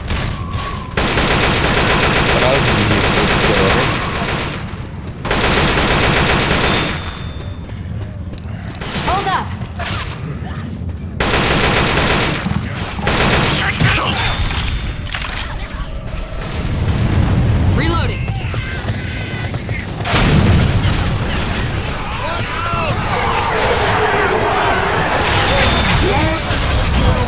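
Rifle gunfire rattles in rapid bursts.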